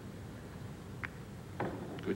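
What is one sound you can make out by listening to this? Billiard balls knock together with a crisp clack.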